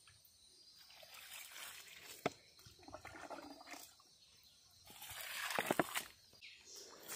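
Water splashes from a ladle onto soil.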